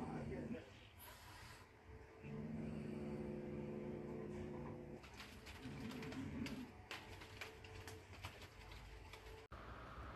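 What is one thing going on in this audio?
A paper toy rustles as it is waved about.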